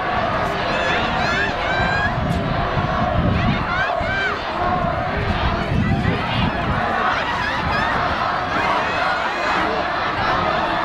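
A large crowd cheers and shouts outdoors, some distance away.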